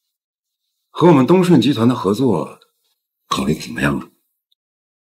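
A man speaks calmly and firmly.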